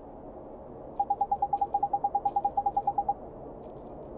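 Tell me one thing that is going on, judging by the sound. Quick, even beeps chirp in a fast run.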